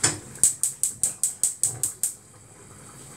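A gas stove igniter clicks rapidly.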